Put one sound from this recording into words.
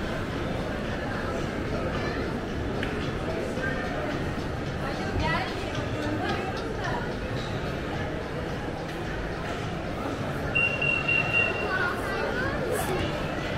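Voices of many people murmur and echo in a large indoor hall.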